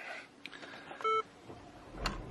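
A car's warning chime beeps once.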